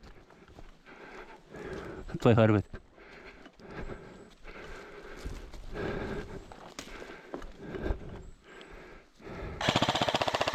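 Footsteps crunch through dry leaves and twigs on the forest floor.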